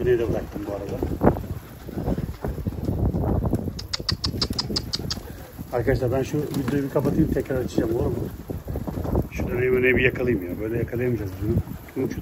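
Pigeons flap their wings as they take off and land.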